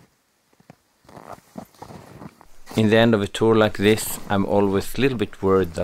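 A heavy sled scrapes and hisses through deep snow.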